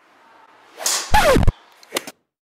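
A golf club strikes a ball with a sharp smack.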